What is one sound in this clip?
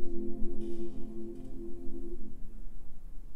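A children's choir sings a held final chord that fades out.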